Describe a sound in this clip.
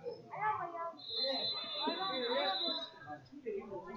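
A referee's whistle blows one long blast.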